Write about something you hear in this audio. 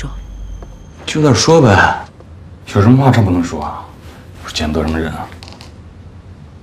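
A young man speaks in a low, calm voice, close by.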